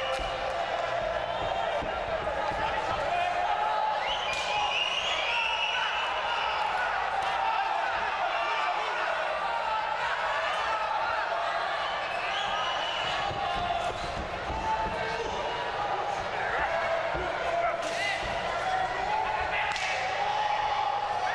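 Bodies thud against the ring ropes and mat.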